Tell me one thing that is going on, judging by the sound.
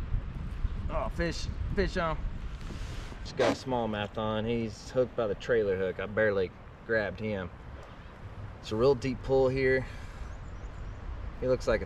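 A man talks calmly and casually, close by.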